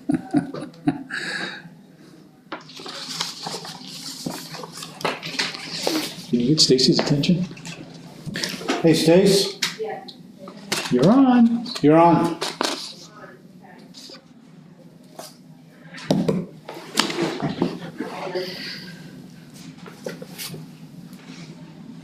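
Papers rustle and shuffle.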